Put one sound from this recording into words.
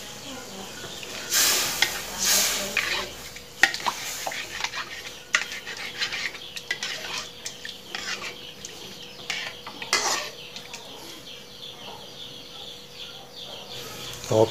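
A metal spatula scrapes and taps against a metal pan.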